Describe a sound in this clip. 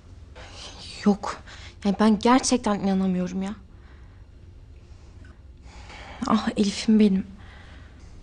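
A young woman speaks calmly and seriously nearby.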